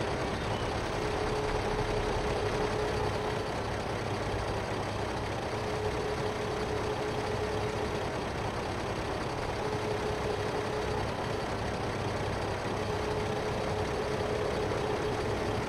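A hydraulic crane arm whines as it moves in bursts.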